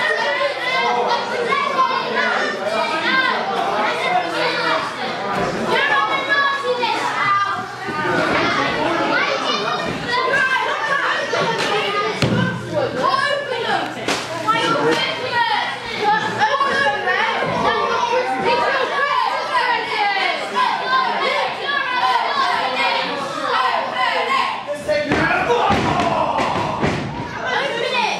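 Wrestlers' bodies thud onto the ring mat.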